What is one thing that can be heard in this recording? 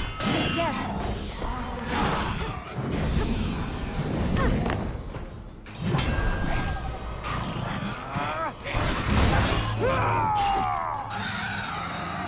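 Metal blades clash and ring in a fierce fight.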